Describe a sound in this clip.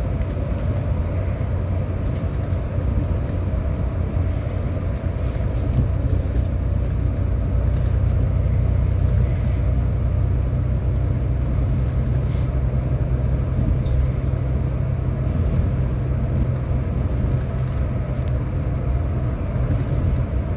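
A bus engine hums and rumbles steadily from inside the bus.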